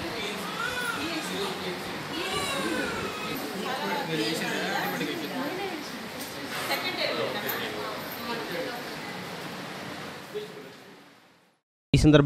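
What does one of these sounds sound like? Several women talk with animation.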